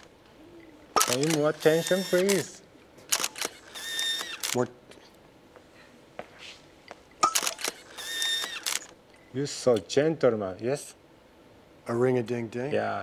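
A middle-aged man speaks slowly and expressively, close by.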